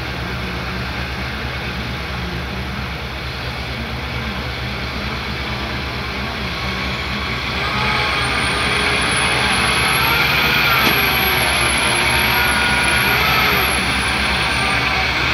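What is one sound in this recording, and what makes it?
A heavy truck engine rumbles steadily and then revs louder as the truck pulls out through mud.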